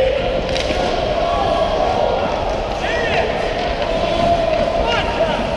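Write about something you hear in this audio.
Ice skates scrape and hiss across the ice in a large echoing hall.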